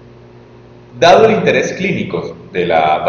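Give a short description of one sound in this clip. A man speaks calmly into a microphone, as if presenting over an online call.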